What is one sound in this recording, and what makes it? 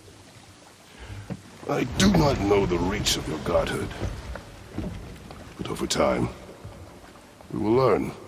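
Water laps against a small wooden boat.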